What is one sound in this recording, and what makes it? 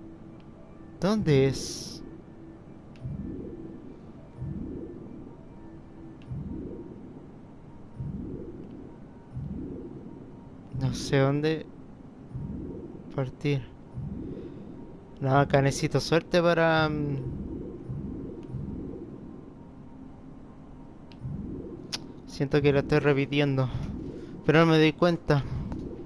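Electronic chirps warble in short bursts.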